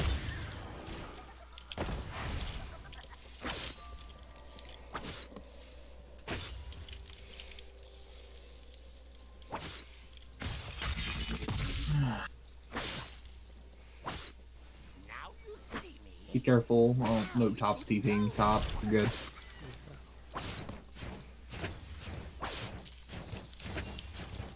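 Game spell effects and attacks crackle and thud in quick bursts.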